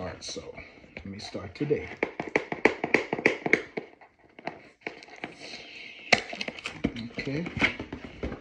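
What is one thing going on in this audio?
Cardboard rustles and taps as a box is handled.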